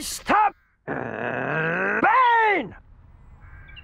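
An elderly woman shouts angrily.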